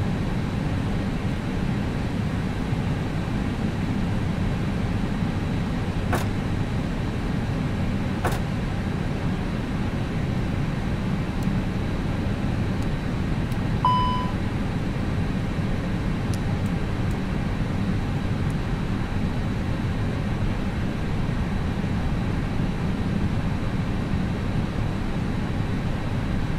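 A steady low hum of air and systems fills a parked airliner's cockpit.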